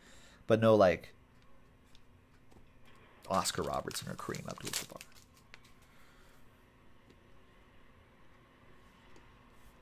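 Cardboard and card wrappers rustle and slide in hands.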